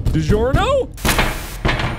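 A harsh burst of static hiss crackles loudly.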